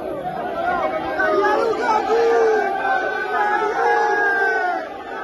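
A large crowd of men chants loudly in unison outdoors.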